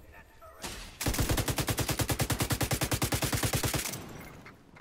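An automatic rifle fires a long rapid burst at close range.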